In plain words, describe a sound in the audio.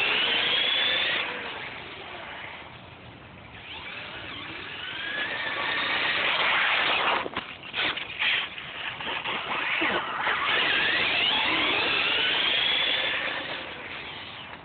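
A remote-control car's electric motor whines, rising and falling in pitch as it speeds past.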